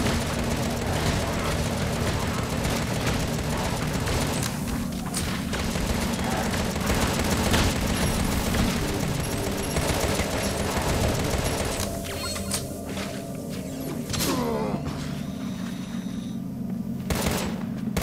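Gunfire and explosions crackle and boom in a video game.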